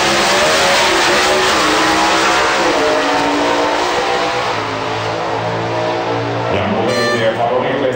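Racing cars roar loudly down a track.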